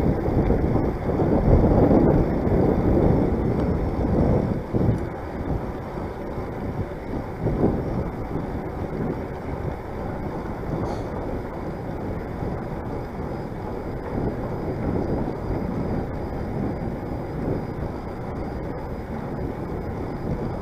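Wind rushes and buffets loudly past a moving bicycle.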